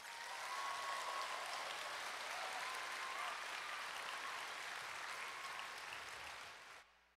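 A young girl sings softly.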